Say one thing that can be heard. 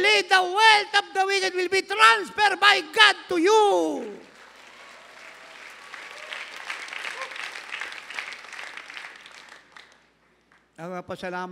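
An elderly man speaks with feeling into a microphone, his voice filling a large hall.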